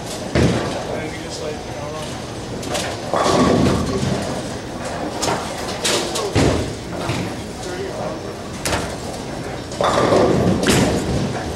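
Bowling balls rumble and pins crash in a large echoing hall.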